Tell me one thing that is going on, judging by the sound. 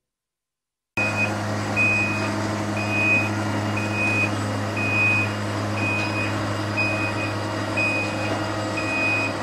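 A truck engine hums steadily nearby.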